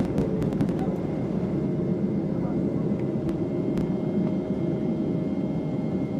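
Wheels rumble and thud along a runway, then fall quiet as the plane lifts off.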